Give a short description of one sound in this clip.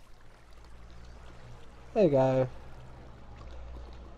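Water flows and splashes nearby.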